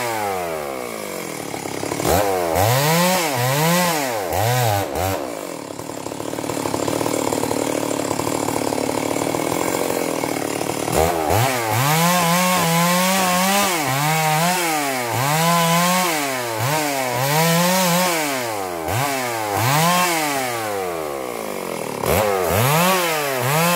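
A chainsaw engine revs up and down repeatedly, close by.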